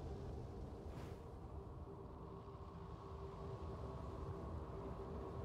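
Wind rushes and rumbles steadily.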